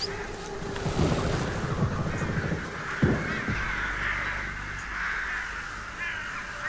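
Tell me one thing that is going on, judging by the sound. A flock of birds takes off with a burst of flapping wings.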